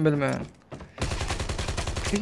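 A rifle fires rapidly in a steady burst.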